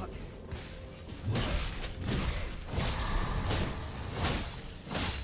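Video game combat effects whoosh and clash in bursts.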